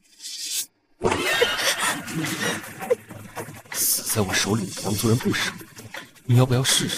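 A young woman speaks tensely.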